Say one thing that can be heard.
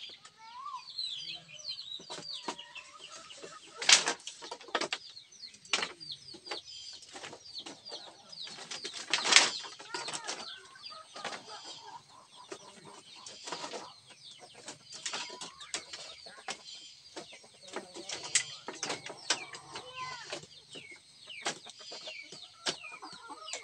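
Bamboo strips clack and knock as they are laid onto a bamboo bench.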